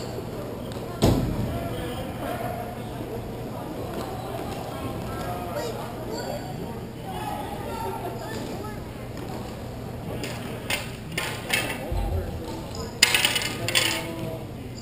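Hockey sticks clack against a ball and each other.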